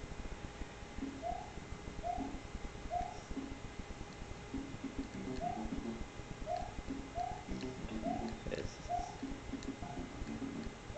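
Upbeat electronic game music plays through a television speaker.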